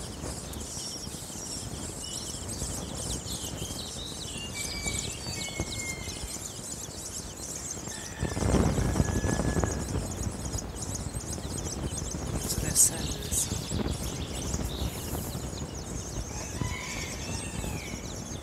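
Many chicks peep in high, chirping voices close by.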